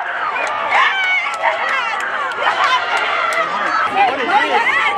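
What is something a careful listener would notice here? Young men shout excitedly in celebration.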